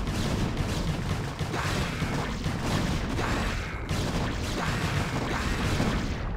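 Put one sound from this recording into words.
Energy weapons zap and crackle in rapid bursts.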